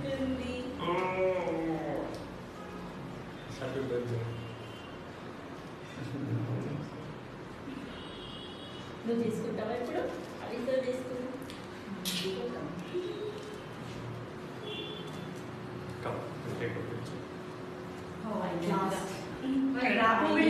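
A small girl babbles in a high voice.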